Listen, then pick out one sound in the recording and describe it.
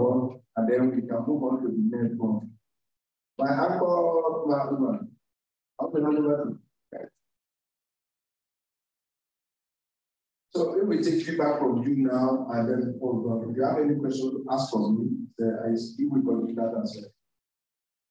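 A man speaks calmly through a microphone, heard over an online call.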